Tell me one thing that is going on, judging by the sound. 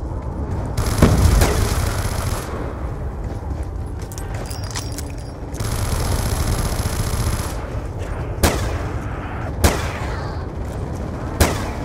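A gun fires single loud shots.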